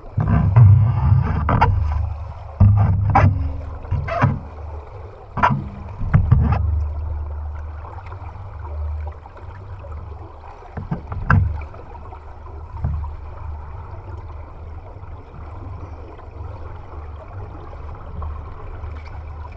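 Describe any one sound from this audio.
Underwater bubbles gurgle and rumble close by, loudest at first.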